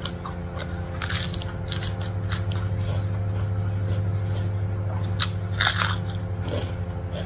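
A woman crunches crisp raw vegetables close to a microphone.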